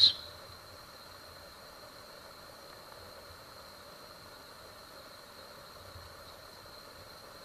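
Fingers turn a pocket knife over, with faint rubbing and light clicks.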